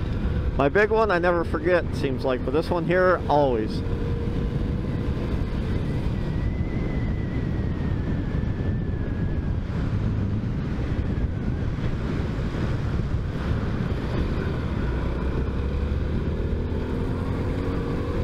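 A motorcycle engine rumbles steadily at cruising speed.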